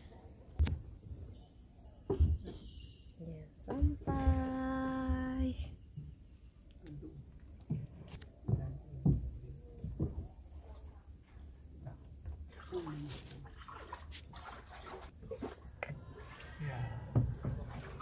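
A wooden pole knocks against a boat's hull.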